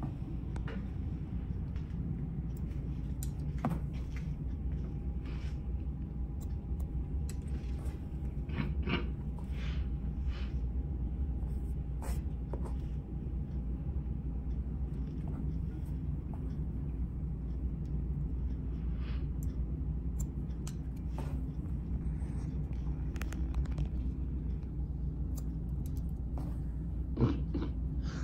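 Scissors snip through hair with short, crisp clicks.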